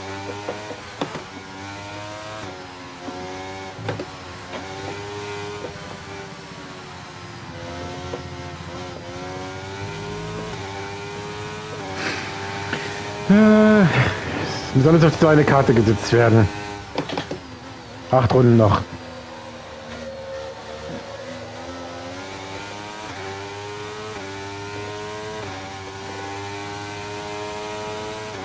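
A racing car engine screams, rising in pitch and dropping sharply with each gear change.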